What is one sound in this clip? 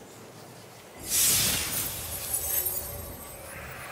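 A loot chest bursts open with a bright shimmering chime.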